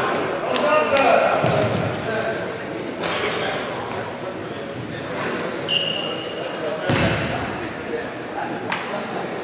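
Players shout to each other in a large echoing hall.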